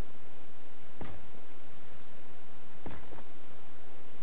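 Heavy stone blocks thud as they are knocked down.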